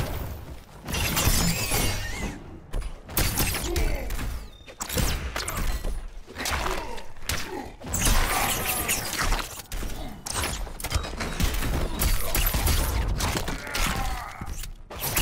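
A creature hisses and screeches.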